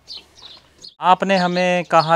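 An elderly woman speaks loudly and with animation close by.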